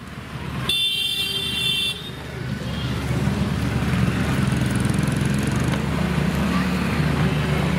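A scooter engine hums as it rides past.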